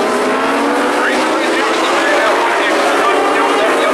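A race car engine revs up and down as the car passes close by.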